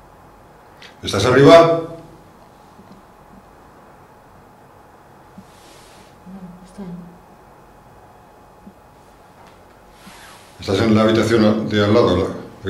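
A man speaks in a low, hushed voice close by.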